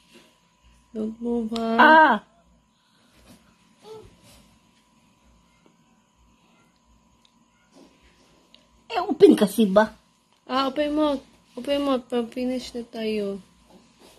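A young girl cries out and whimpers close by.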